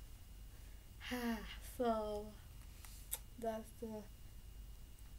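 A young woman sings out short, high, drawn-out notes close by.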